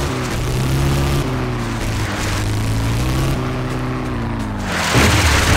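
An off-road buggy engine revs loudly and steadily.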